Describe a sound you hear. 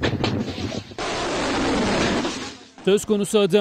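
A missile launches with a loud roaring rush.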